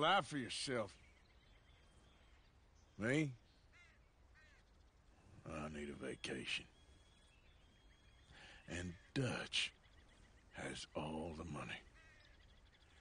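A man with a deep, gravelly voice talks calmly.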